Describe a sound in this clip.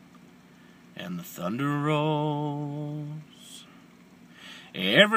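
A young man sings a long, held note close by.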